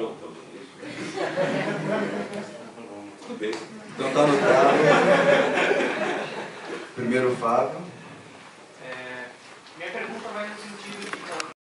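An elderly man speaks with animation, heard from across an echoing room.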